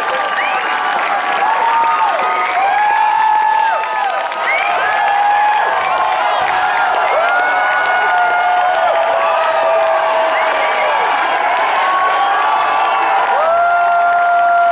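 A large crowd cheers and whoops loudly in a big echoing hall.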